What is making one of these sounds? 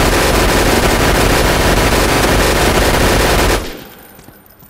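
A rifle fires rapid bursts with loud hissing blasts.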